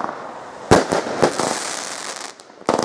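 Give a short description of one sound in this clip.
Crackling stars pop and sputter in the air.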